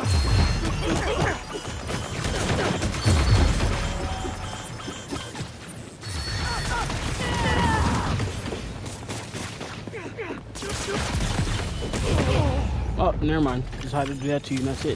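Punches and kicks thud in a fight.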